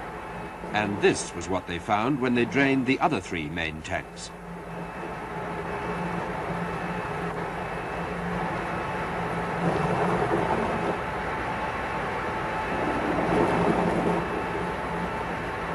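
Liquid pours into a metal container.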